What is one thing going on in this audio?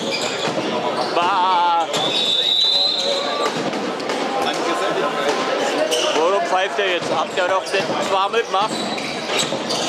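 Young men shout to each other in a large echoing hall.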